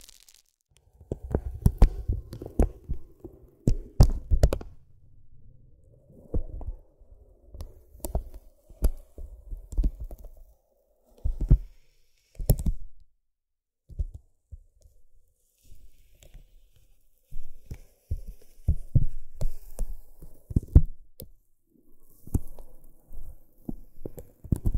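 A plastic stick taps and scratches on crinkly paper close up.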